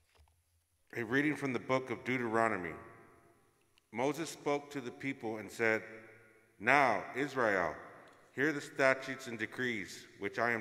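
A man speaks calmly into a microphone in a reverberant hall.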